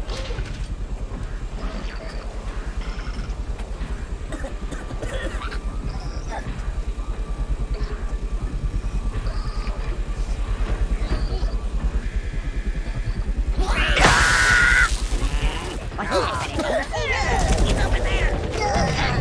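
Steam hisses from a vent in bursts.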